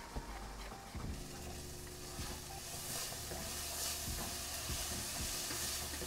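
Onions sizzle in a frying pan.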